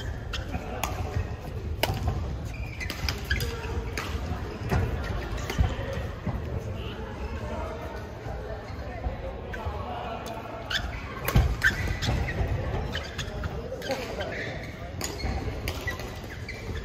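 Badminton rackets smack a shuttlecock in sharp hits, echoing in a large hall.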